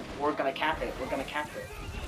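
A magical blast bursts with a crackling boom.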